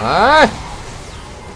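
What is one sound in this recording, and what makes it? A young man speaks into a microphone.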